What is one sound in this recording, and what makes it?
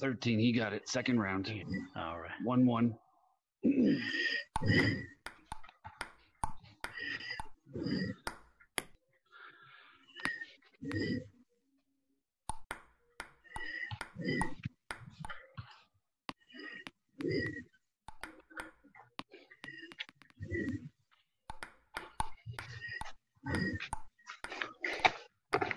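A ping-pong ball clicks sharply back and forth off paddles and a table.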